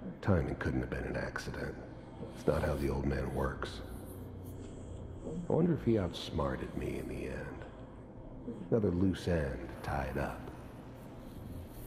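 A man speaks calmly and gravely, close by.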